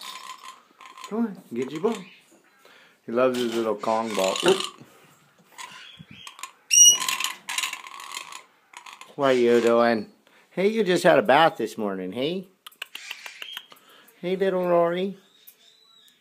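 A parrot makes warbling, voice-like calls close by.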